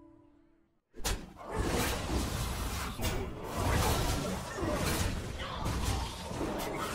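A game's spell effects and attacks clatter and chime rapidly.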